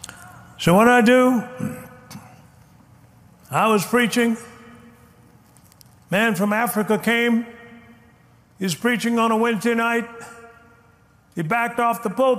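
A man speaks forcefully in short, emphatic phrases through a microphone.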